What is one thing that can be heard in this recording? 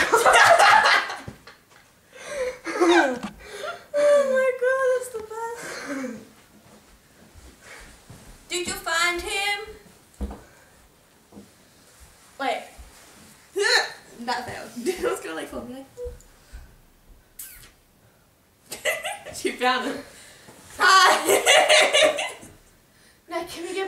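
A teenage girl laughs loudly close by.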